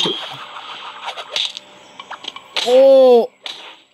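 A hammer drops and thuds onto the ground.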